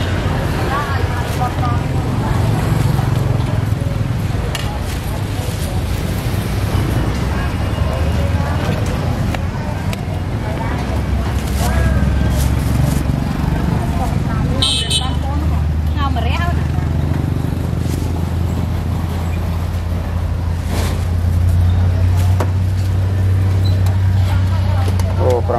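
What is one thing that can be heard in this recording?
A plastic bag rustles as food is packed.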